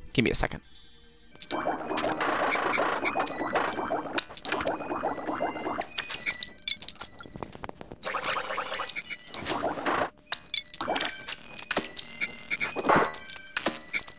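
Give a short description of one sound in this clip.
A video game plays short chimes and beeps.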